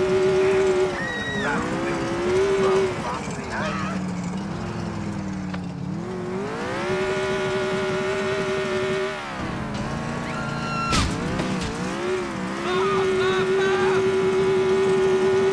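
Car tyres squeal on the road.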